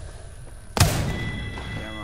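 A gun fires a single loud shot.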